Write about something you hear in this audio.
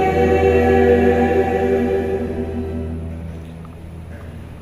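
A man sings through a loudspeaker in an echoing hall, then fades out.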